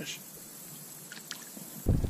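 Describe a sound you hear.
A fish splashes in the water as it is released.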